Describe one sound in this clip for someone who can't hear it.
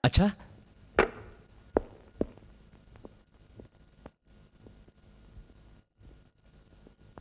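Footsteps tap on a hard floor as a man walks in.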